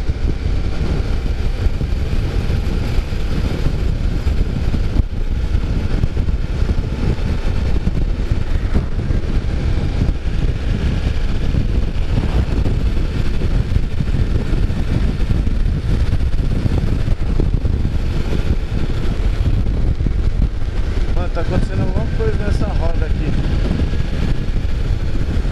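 Wind rushes and buffets loudly past a moving motorcycle.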